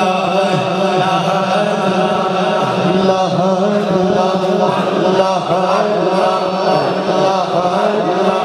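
A man sings a devotional chant loudly through a microphone and loudspeakers.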